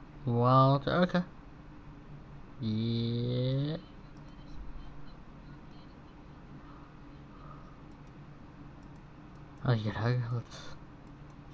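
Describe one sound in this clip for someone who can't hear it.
A woman speaks calmly in short phrases.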